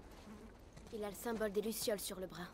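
A girl speaks calmly nearby.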